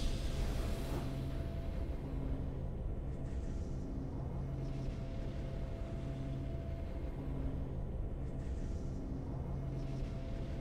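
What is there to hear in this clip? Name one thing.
Soft game music plays in a slow repeating loop.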